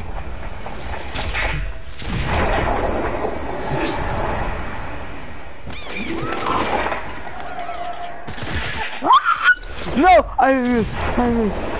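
An icy blast bursts with a crackling whoosh.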